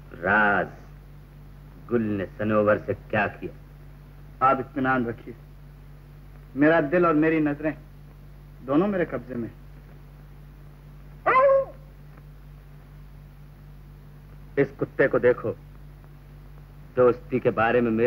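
A second man answers with animation.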